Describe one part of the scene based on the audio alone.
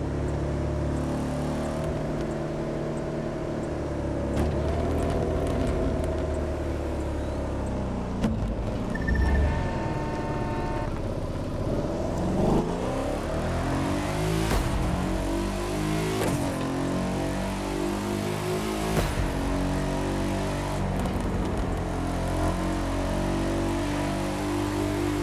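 A sports car engine roars and revs up and down through the gears.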